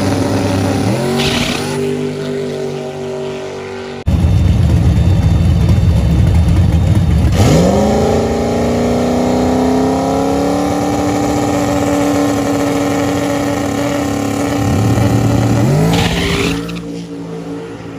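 A car engine revs up sharply with a rising roar.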